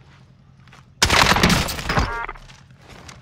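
A rifle fires a loud shot that echoes.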